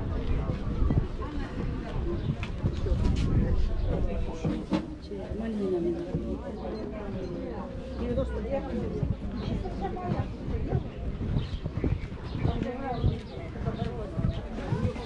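Women talk nearby outdoors.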